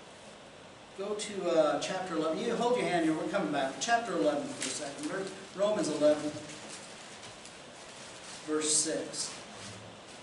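An older man speaks calmly.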